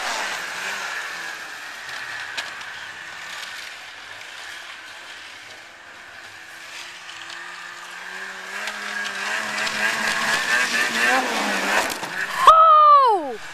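A two-stroke snowmobile speeds past at high revs.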